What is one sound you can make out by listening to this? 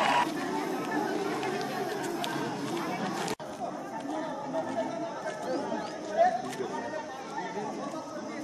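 A crowd of men chatters nearby outdoors.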